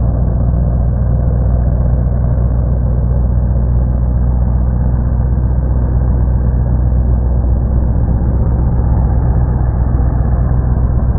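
A truck engine roars loudly and steadily.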